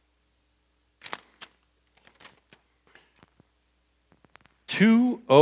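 Paper rustles as a sheet is handled.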